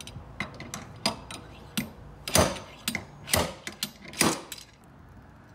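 A slide hammer knocks sharply against metal several times.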